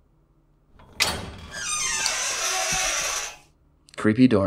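A door creaks slowly open.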